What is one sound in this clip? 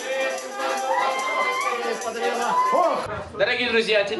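A crowd of people sings and cheers together.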